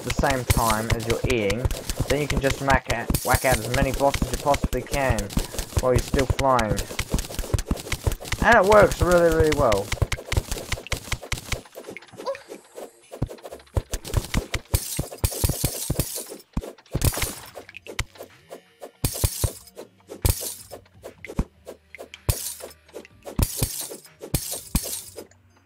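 A game character's pickaxe chips at stone in quick, sharp clicks.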